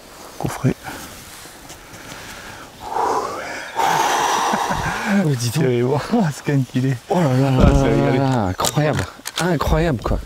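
A middle-aged man talks with animation close by.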